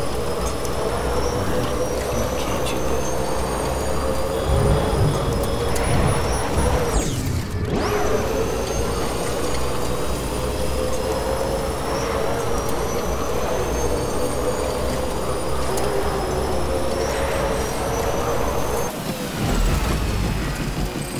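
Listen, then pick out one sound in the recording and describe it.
Tyres roll over smooth tarmac.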